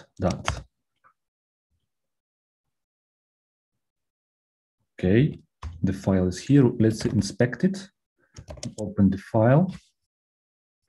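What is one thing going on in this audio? A man speaks calmly through a microphone over an online call.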